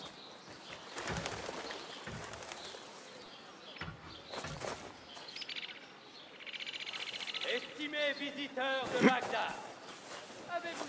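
Leaves rustle as someone pushes through thick foliage.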